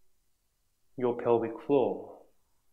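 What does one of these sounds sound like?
A man speaks calmly and slowly.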